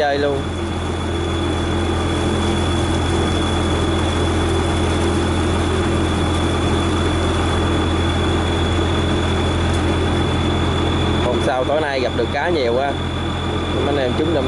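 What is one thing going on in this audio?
A boat engine chugs steadily nearby.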